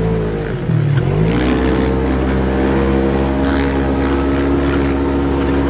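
Wind rushes past an open vehicle.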